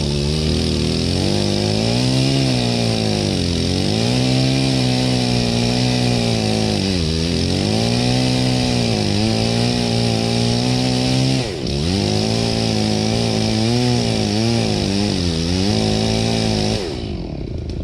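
A chainsaw engine revs and idles loudly up close.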